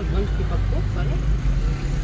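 A motorcycle rides past close by.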